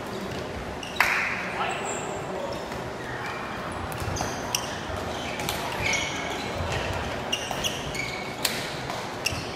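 A ball thuds against a foot.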